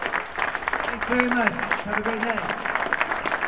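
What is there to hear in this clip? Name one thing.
A man calls out briefly over the applause.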